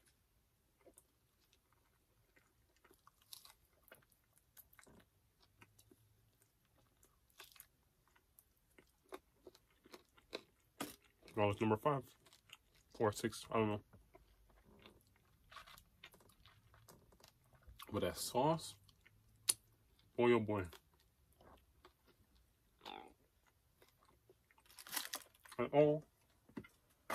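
Foil and paper crinkle as food is handled.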